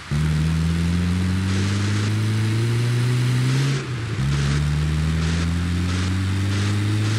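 Tyres hiss over sand.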